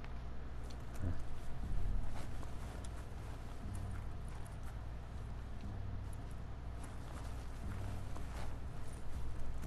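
Footsteps crunch softly over grass and rocks.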